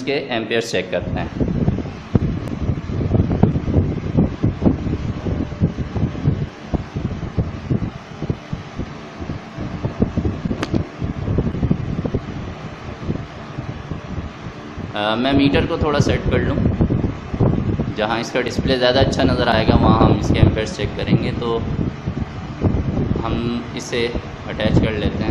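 An electric fan whirs steadily.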